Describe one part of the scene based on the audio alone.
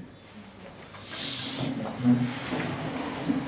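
Chairs scrape on the floor as a group of men sit down.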